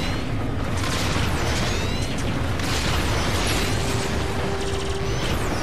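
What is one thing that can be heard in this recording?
Laser shots fire in rapid bursts.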